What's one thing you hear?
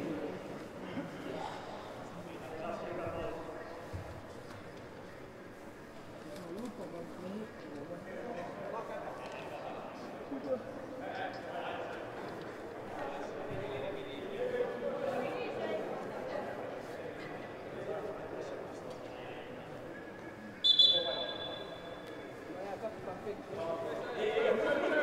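Football players shout to each other in a large echoing hall.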